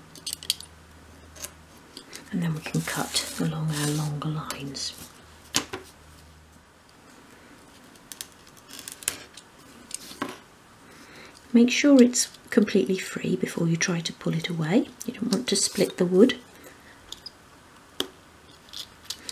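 A craft knife scores and scrapes thin wood.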